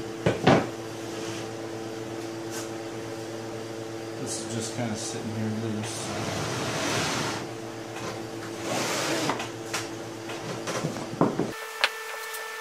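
Wooden tiles clack and slide on a wooden table.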